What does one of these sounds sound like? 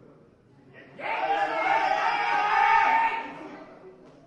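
Men shout loud encouragement in an echoing hall.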